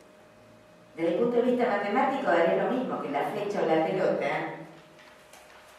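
A woman speaks calmly into a microphone, heard through a loudspeaker in a hall.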